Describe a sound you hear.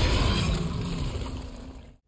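A dog snarls and growls.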